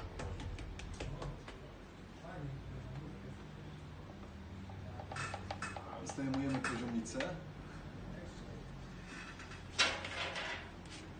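Hands tap and knock on wooden wall panels.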